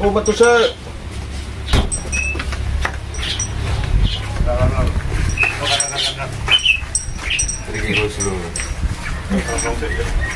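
Men talk casually nearby outdoors.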